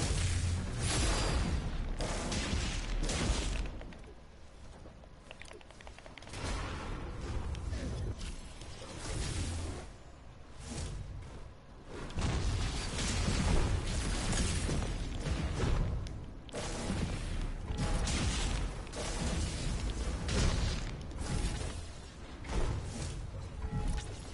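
Game gunfire bursts in quick, loud volleys.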